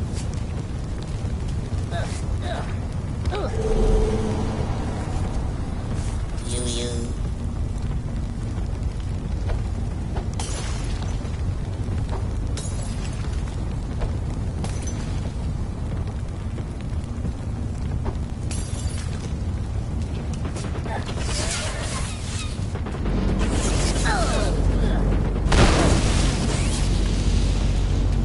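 Flames crackle and roar steadily, with a low rumble.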